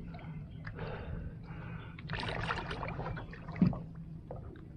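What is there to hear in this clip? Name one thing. Water splashes and sloshes as a man swims nearby.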